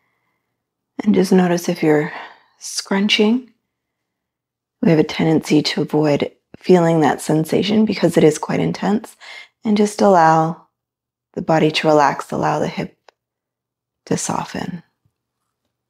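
A woman speaks calmly and slowly, close to a microphone.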